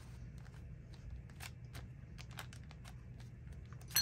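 A hand presses and smooths paper with a soft rubbing.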